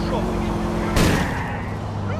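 A car thuds into another car.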